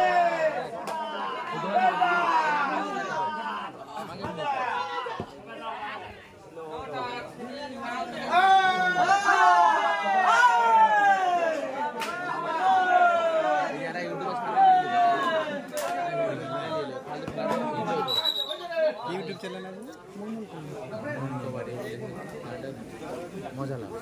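A crowd of onlookers murmurs and shouts in the open air.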